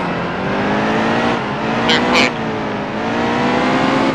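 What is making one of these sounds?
Tyres screech on the track.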